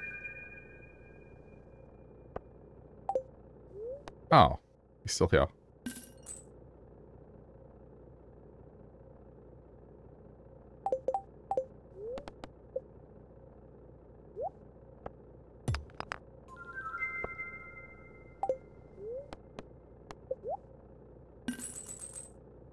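Short game menu clicks and pops sound now and then.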